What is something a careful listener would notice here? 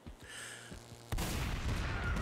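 A blaster fires with a loud burst.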